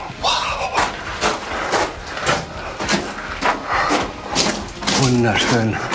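Footsteps crunch on gravel in an echoing tunnel.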